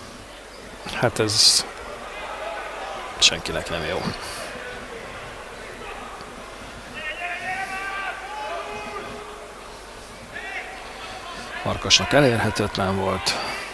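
A sparse crowd murmurs and calls out in an open stadium.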